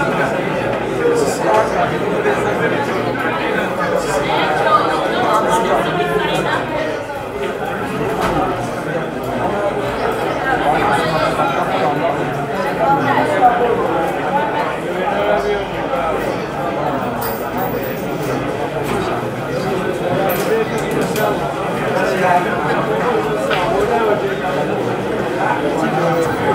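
A crowd of young men chatters loudly all around.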